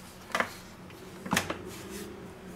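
A kitchen mixer's head clicks and thuds into place.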